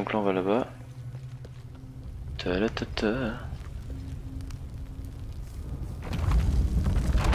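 Fire roars with a deep, low rumble.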